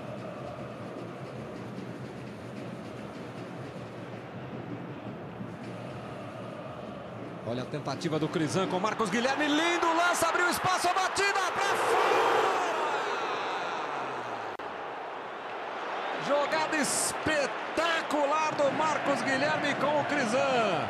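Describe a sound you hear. A large stadium crowd murmurs and chants steadily outdoors.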